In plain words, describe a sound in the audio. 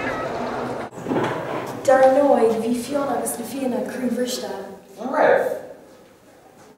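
A teenage girl speaks nearby.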